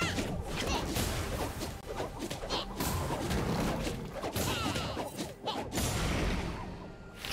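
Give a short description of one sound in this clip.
Magic and weapon hits strike a monster in rapid bursts.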